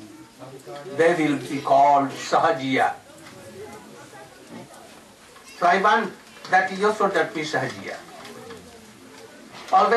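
An elderly man speaks calmly into a microphone, in pauses.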